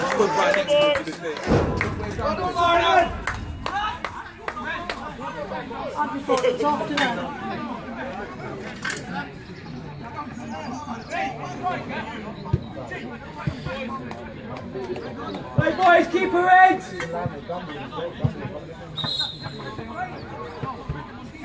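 Men nearby talk and call out outdoors.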